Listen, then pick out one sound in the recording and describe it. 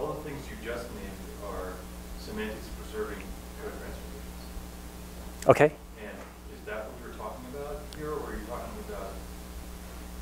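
A man speaks calmly to an audience, heard through a microphone.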